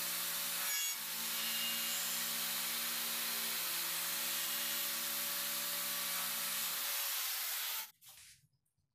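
A power router whines loudly as it cuts wood.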